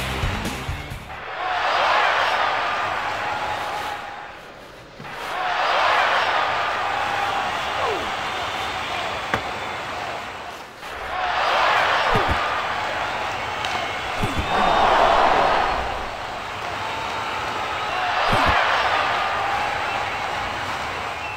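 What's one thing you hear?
A crowd roars in a large arena, swelling and fading in waves.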